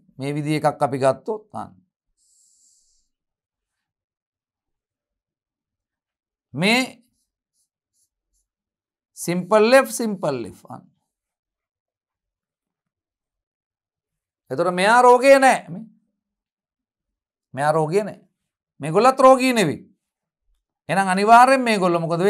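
A man speaks clearly into a close microphone, explaining in short bursts with pauses.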